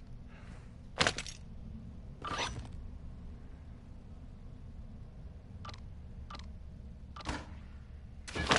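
Items clatter as they are picked up.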